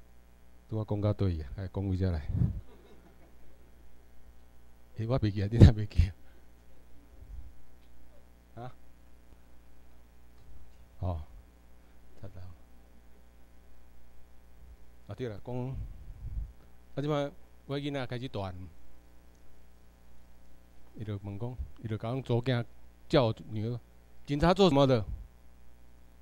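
A middle-aged man speaks calmly into a microphone over a loudspeaker, in an echoing room.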